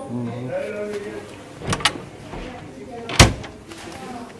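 A wooden lid and drawer knock as they are opened and closed.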